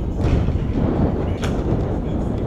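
A skateboard grinds and clatters on a stair rail.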